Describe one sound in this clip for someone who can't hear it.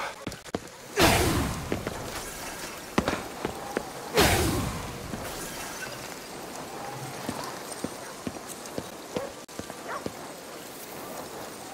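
Crackling energy blasts whoosh out in loud bursts.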